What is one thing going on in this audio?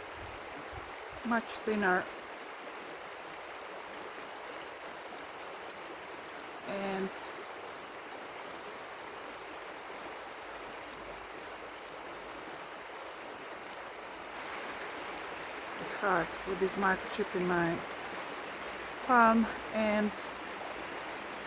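A river flows gently nearby.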